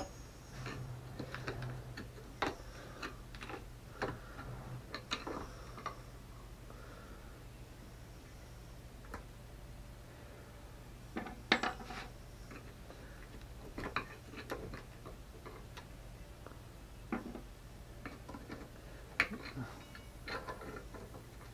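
A screwdriver scrapes and clicks against metal.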